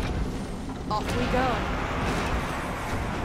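A bright game chime rings out.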